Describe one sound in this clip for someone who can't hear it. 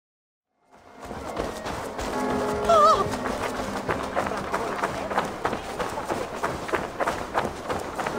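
Footsteps tread steadily on the ground.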